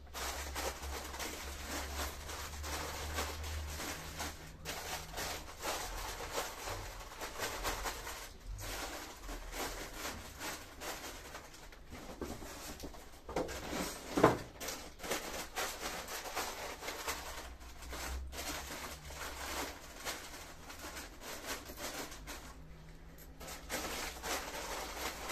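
Snack packets rustle and crinkle close by.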